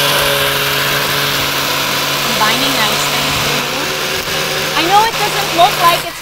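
A blender whirs steadily, churning a thick liquid.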